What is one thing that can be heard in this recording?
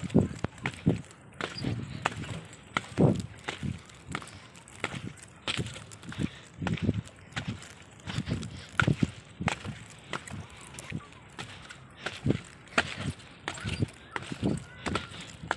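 Feet thump and bounce on a springy trampoline.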